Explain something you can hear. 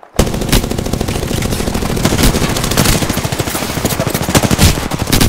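A rifle fires in rapid bursts of loud gunshots.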